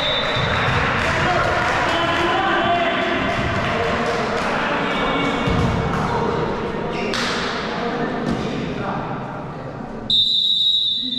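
Players and spectators shout and chatter in a large echoing hall.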